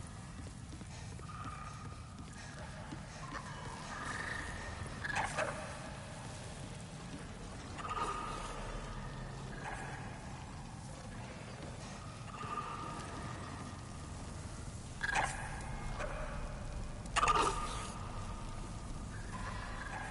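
Footsteps thud on wooden stairs and planks.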